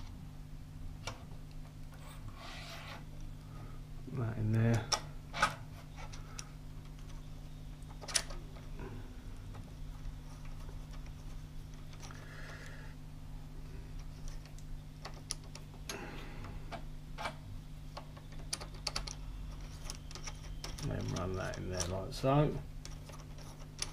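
Metal parts click and clack as a small clamp is adjusted by hand.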